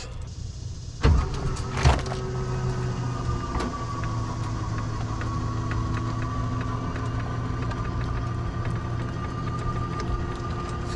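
An electric motor hums steadily as a jack mechanism runs.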